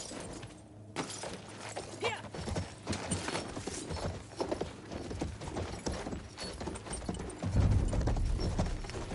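A horse gallops with quick, steady hoofbeats on sand.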